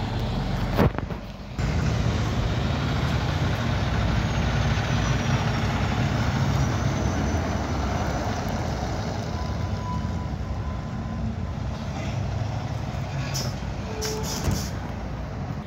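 A heavy tanker truck rumbles past close by, its diesel engine droning loudly, then fades.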